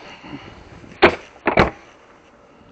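A plastic bin lid thumps open and bangs shut.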